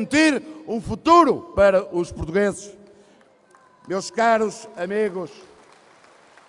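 A man speaks forcefully through a microphone in a large echoing hall.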